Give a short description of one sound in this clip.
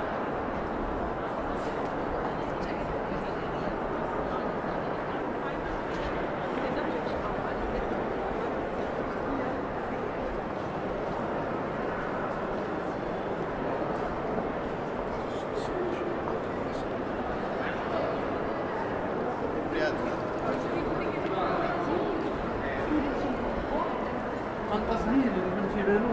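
A crowd chatters and murmurs all around in a large echoing hall.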